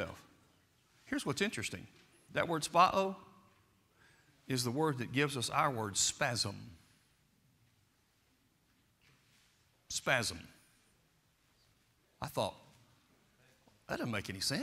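An older man preaches with animation through a microphone, in a large echoing hall.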